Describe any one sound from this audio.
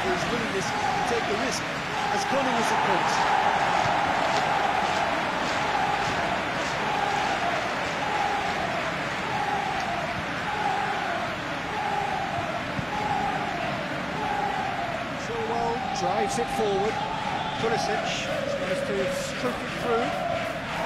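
A stadium crowd roars and chants steadily.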